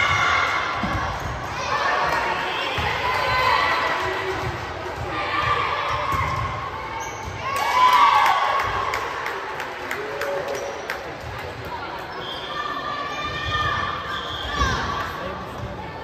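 Voices of a crowd echo through a large indoor gym.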